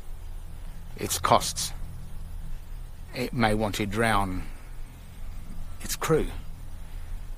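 A middle-aged man speaks close by in short bursts, calmly.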